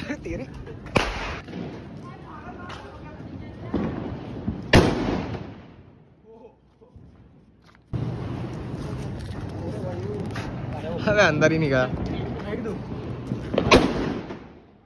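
Firecrackers bang loudly outdoors.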